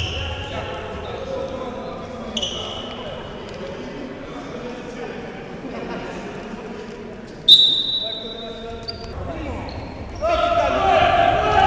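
Sneakers squeak on a hard court in an echoing hall.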